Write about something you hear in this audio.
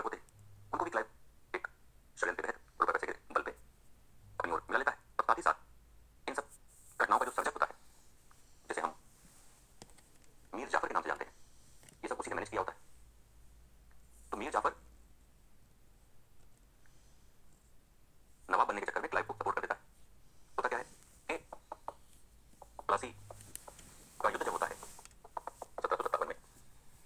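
A man lectures with animation through a small loudspeaker, with pauses.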